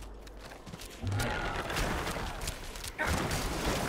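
Game combat sounds clash and crash with impacts.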